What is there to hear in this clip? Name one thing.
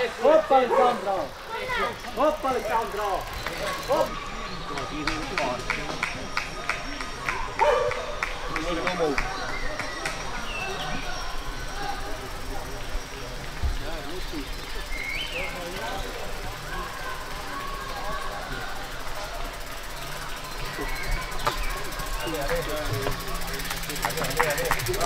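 Bicycles roll and rattle over a dirt trail.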